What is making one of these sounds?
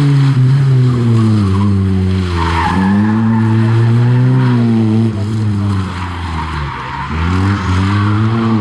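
A small four-cylinder rally hatchback revs hard through gear changes as it races past.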